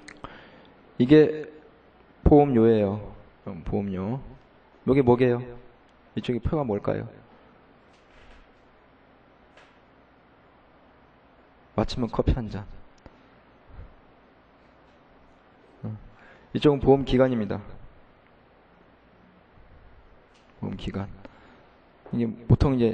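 A man lectures calmly through a microphone, in short phrases with pauses.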